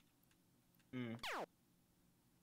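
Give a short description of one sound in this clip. A game shot fires with a quick falling whistle.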